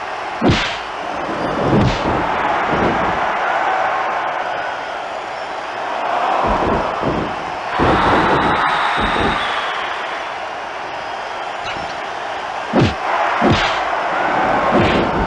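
Punches and slams thud loudly again and again.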